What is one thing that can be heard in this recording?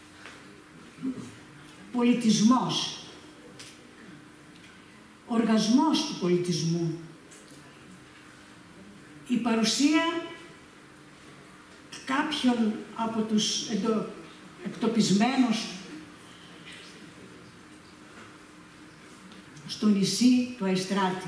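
An elderly woman reads aloud slowly into a microphone, with long pauses.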